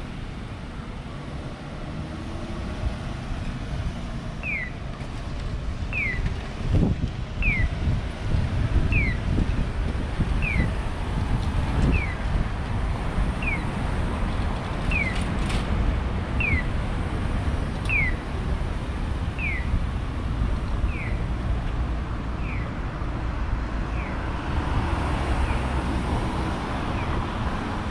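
Traffic drives past on a street.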